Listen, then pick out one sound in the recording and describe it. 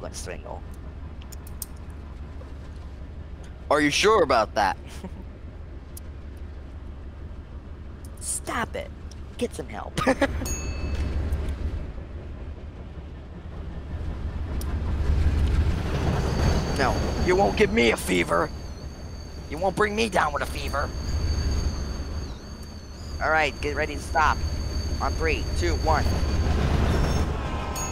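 A train rumbles along on rails.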